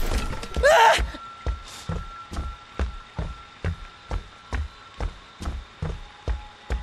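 Heavy footsteps thud steadily on a wooden floor.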